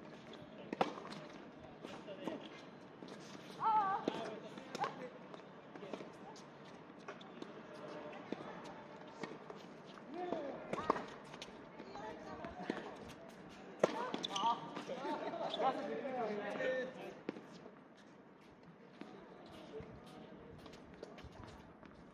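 Tennis balls are struck with rackets, with sharp pops now and then.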